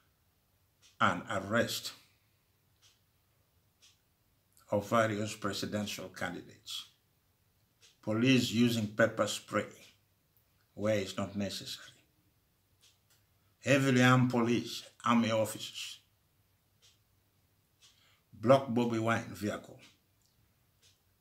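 An elderly man speaks slowly and calmly, in short phrases with pauses, heard close through a microphone.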